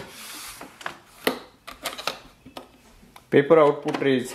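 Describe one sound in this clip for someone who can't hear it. A plastic tray clicks into place on a printer.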